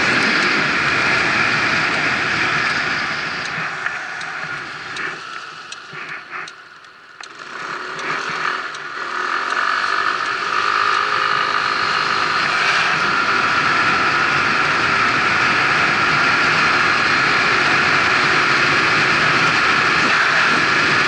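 Wind rushes loudly past a moving rider, dying down briefly as the rider slows and then growing strong again.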